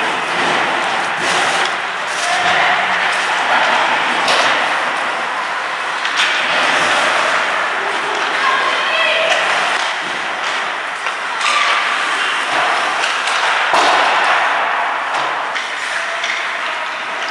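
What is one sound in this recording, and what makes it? Ice skates scrape and swish across the ice.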